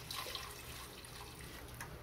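Liquid pours into a pot.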